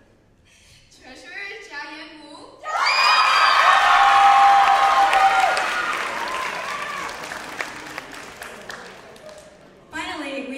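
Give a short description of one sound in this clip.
A crowd of young people cheers and screams loudly in a large hall.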